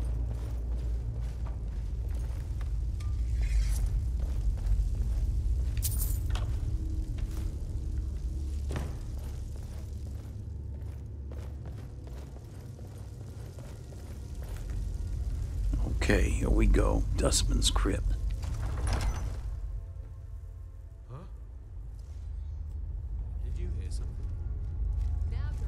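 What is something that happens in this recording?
A low rumbling drone hums steadily.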